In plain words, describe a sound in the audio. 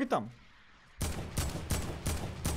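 Gunshots fire in a rapid burst.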